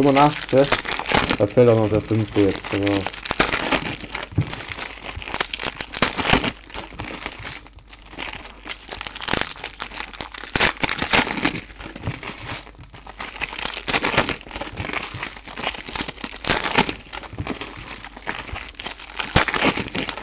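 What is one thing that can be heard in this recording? Foil wrappers crinkle and tear close by.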